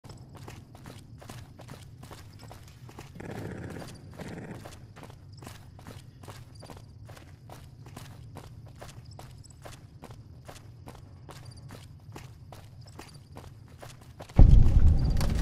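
Footsteps run at a steady pace.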